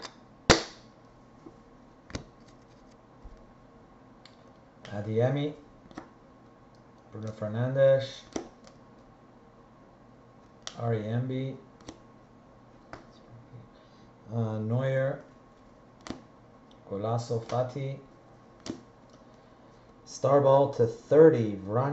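Trading cards click and rustle as hands shuffle them.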